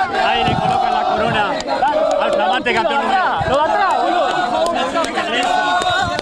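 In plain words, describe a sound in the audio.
A crowd of men talks and cheers excitedly close by.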